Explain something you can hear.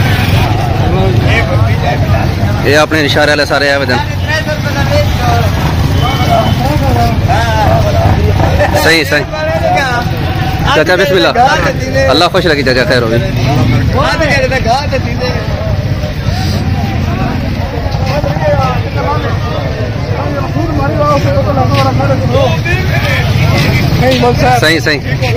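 Several men talk loudly and over one another outdoors.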